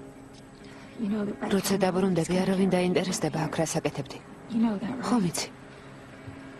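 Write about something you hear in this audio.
A woman speaks close by in a tearful, pleading voice.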